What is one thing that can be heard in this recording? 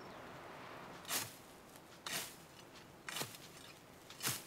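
A hoe scrapes and chops into dry soil in rhythmic strokes.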